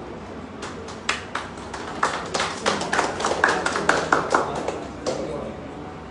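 A small group of people clap their hands briefly.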